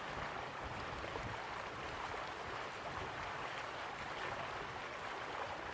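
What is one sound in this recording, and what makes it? A waterfall rushes steadily in the distance.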